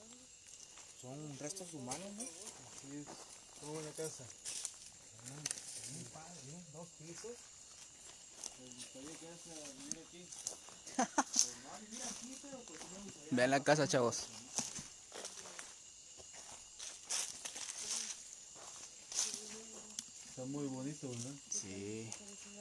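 A man talks quietly and tensely close by.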